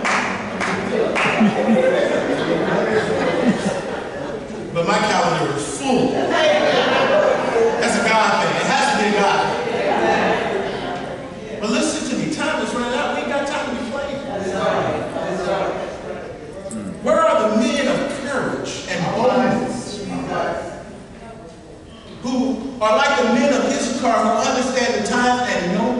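A man speaks with animation into a microphone, heard through loudspeakers in an echoing hall.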